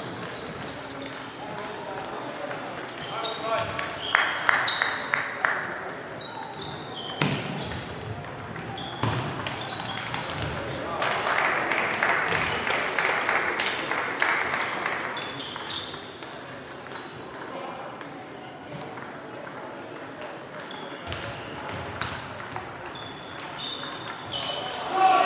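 Table tennis balls click on paddles and tables throughout a large echoing hall.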